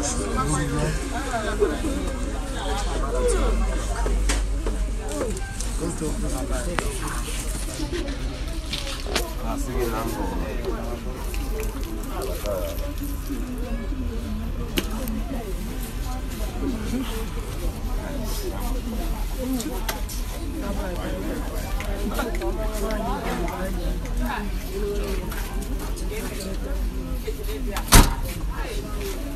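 A crowd of men and women talk and call out all around, close by.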